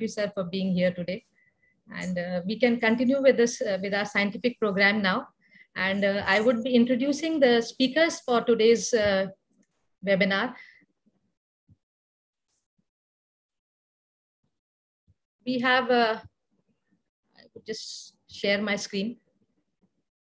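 A woman speaks calmly over an online call.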